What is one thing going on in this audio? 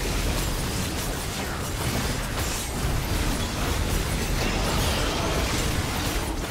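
Magic blasts, whooshes and clashing hits crackle in a frantic fight in a video game.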